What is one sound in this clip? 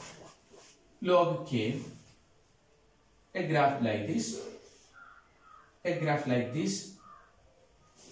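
A man speaks calmly nearby, in short bursts with pauses.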